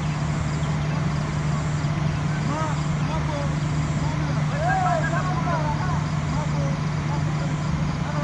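Men call out across an open field in the distance.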